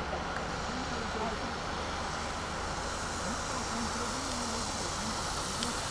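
A van approaches, its tyres hissing on the wet road.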